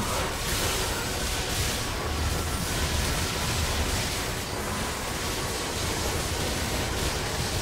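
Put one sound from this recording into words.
Game sound effects crackle and blast as magic attacks hit.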